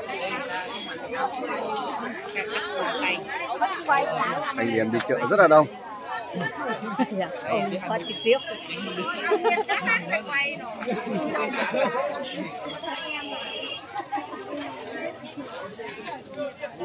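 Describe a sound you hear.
A crowd of men and women chatter all around, close by and outdoors.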